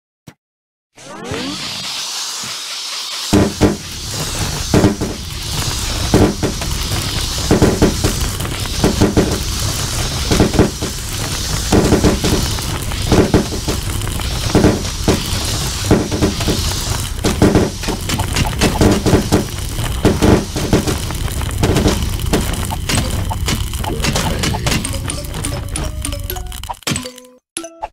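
Cartoon plants fire rapid popping shots.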